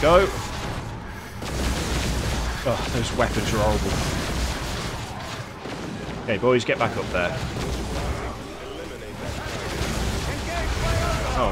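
Energy weapons crackle and blast in short bursts.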